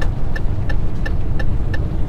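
A windscreen wiper sweeps across the glass.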